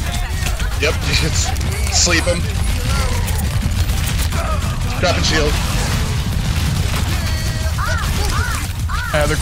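Energy weapons fire in rapid bursts with loud zaps.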